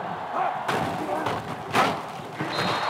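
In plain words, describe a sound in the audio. Football players collide in a hard tackle with thudding impacts.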